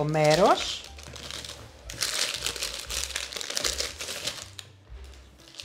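Baking paper crinkles and rustles as it is handled.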